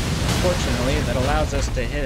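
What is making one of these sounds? Fire roars from a dragon's breath.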